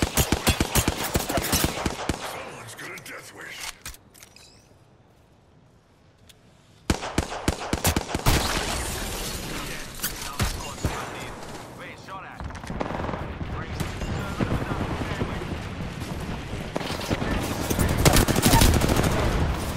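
Rapid gunfire crackles in quick bursts.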